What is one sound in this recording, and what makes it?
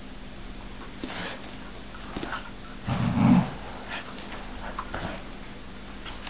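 A dog shoves a pet bed, which scrapes and thumps across a rug.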